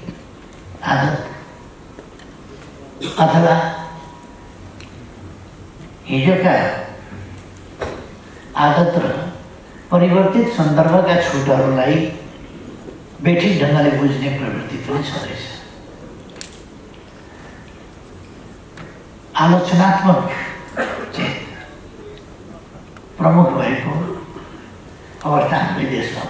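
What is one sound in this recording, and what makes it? An elderly man speaks slowly and deliberately into a microphone, with pauses between phrases, in a large echoing hall.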